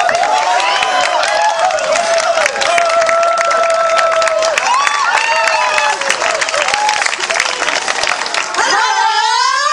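A crowd of men and women cheers and shouts.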